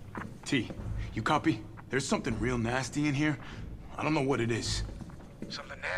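A man speaks calmly and quietly.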